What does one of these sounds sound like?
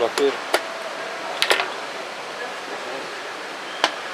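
A wooden chess piece knocks down onto a board.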